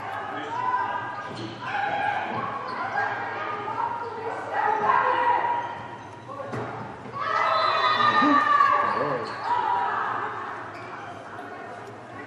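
Young women shout and cheer in a large echoing hall.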